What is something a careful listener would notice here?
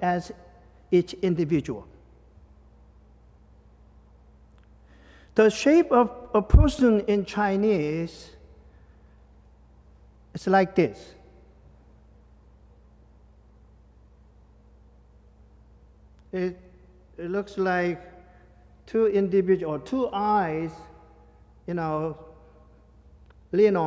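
A man speaks calmly through a microphone in short phrases with pauses.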